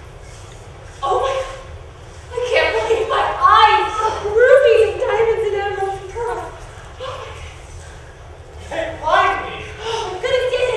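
A young woman sings expressively in a large hall.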